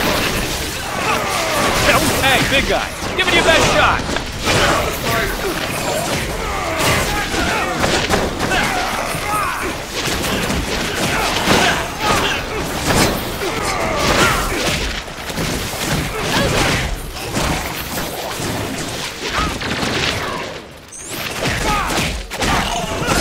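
Punches and kicks land with sharp thuds over and over.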